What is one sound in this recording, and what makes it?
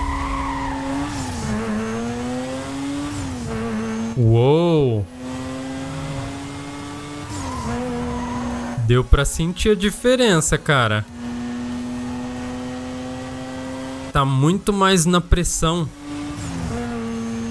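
A car engine roars at high revs and shifts gears.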